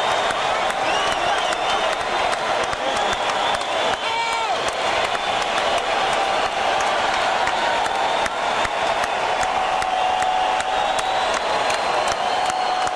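An electric guitar plays loudly through amplifiers.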